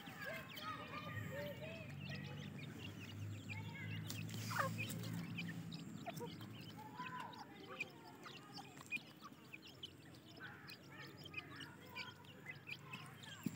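Adult quail peck at dry ground with soft scratchy taps.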